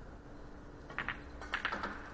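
A cue sharply strikes a ball.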